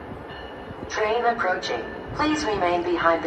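A train horn blares loudly as a train approaches.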